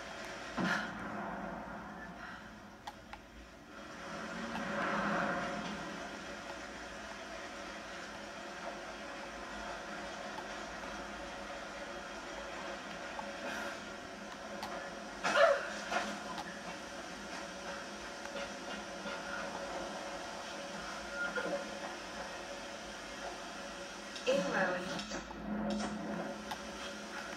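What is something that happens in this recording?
A television plays a show at low volume.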